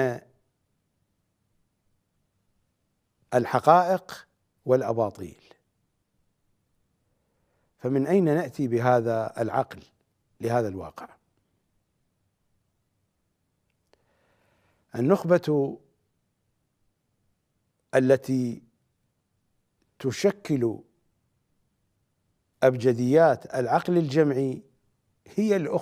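A middle-aged man speaks with emphasis into a close microphone, pausing often.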